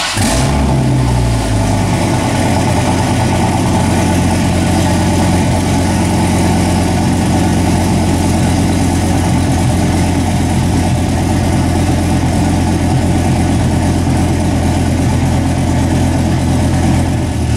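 A pickup truck engine idles with a steady low rumble.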